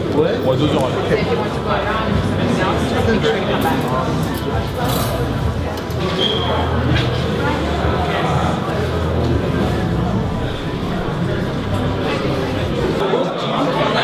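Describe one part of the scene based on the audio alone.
People chatter in the background of a busy room.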